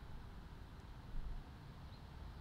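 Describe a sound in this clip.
A small bird flutters its wings as it takes off.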